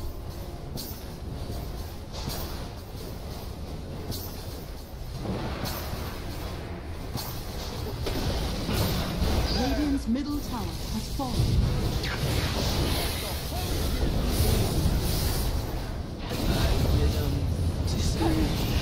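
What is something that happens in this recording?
Spell blasts and impacts crash and whoosh throughout a game battle.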